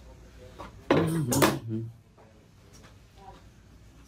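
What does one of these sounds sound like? A plastic container is set down with a light knock on a hard counter.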